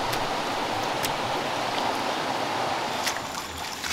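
Wet mud slaps onto a pile of mud.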